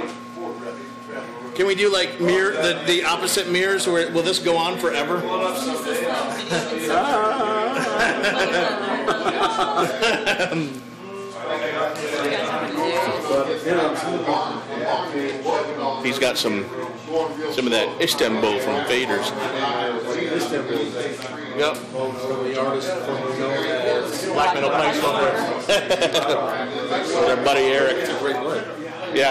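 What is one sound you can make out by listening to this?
A second man talks nearby in a room.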